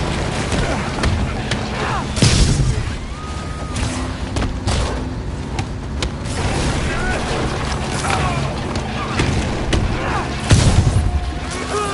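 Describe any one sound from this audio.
Heavy punches and kicks land with thuds in a fight.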